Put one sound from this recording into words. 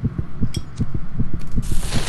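A flame flares and hisses.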